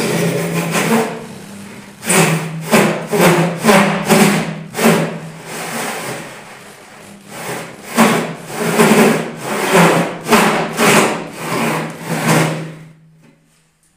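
A power sander whirs steadily and grinds against a surface.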